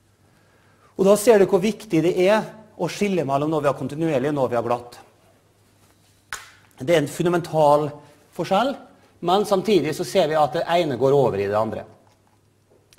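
A man lectures calmly through a microphone in a large echoing hall.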